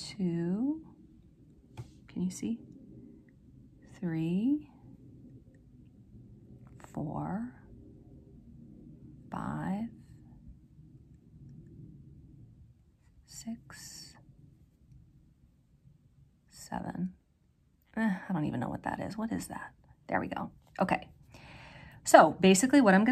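Metal knitting needles tap and click softly.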